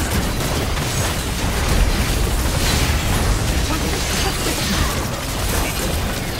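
Game spell effects crackle and burst during a fight.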